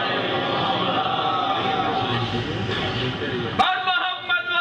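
A crowd of men murmurs and talks together.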